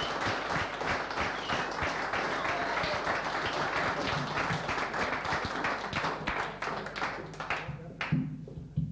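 A crowd claps and cheers loudly in a room.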